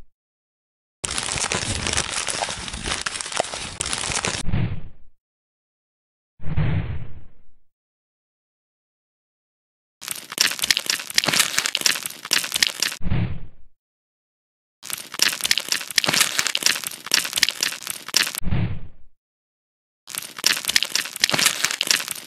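A knife crunches and scrapes as it cuts through a brittle surface.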